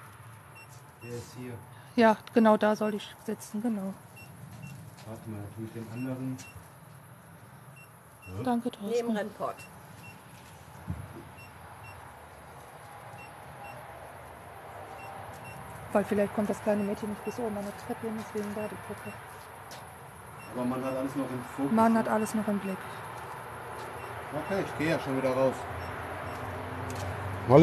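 A young man talks casually nearby, in bursts with pauses.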